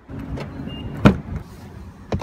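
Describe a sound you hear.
A car door handle clicks as it is pulled.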